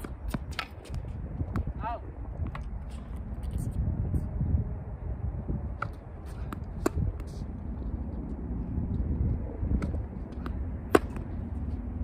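A paddle hits a ball with sharp hollow pops.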